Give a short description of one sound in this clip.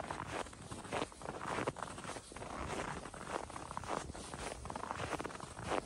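Footsteps crunch in deep snow at a steady walking pace.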